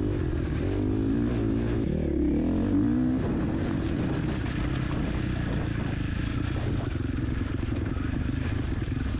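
A dirt bike engine revs and roars up close as it rides along.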